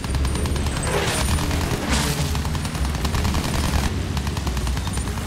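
A propeller plane engine drones loudly and steadily.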